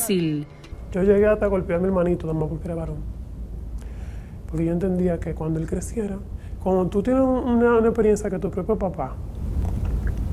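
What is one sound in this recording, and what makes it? A woman speaks calmly and quietly, close to a microphone.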